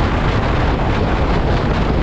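Another motorcycle passes close by.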